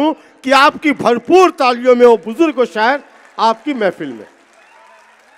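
A man recites loudly and with feeling into a microphone.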